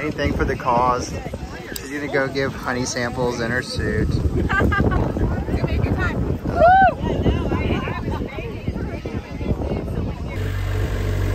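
Young women talk and laugh loudly outdoors.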